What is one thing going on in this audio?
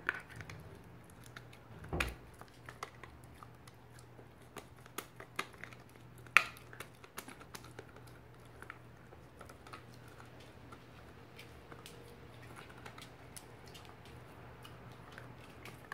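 A dog's claws click and scrape on a hard floor as it tugs at a toy.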